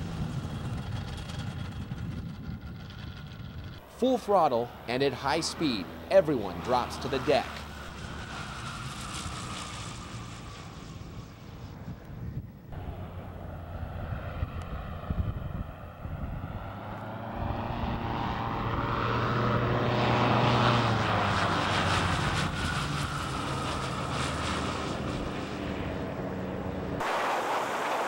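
A small aircraft engine drones and buzzes as an ultralight flies past.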